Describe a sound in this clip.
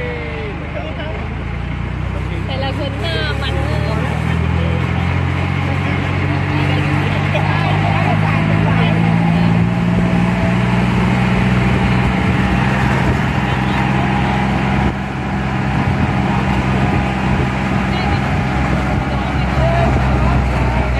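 A diesel tractor engine chugs as it drives along.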